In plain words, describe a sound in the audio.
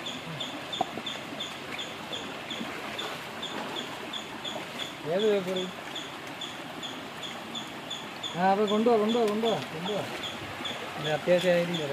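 Shallow water rushes and splashes over stones.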